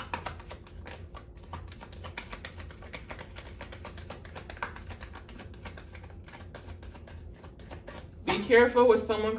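Playing cards are shuffled by hand with quick, soft flicking and clicking.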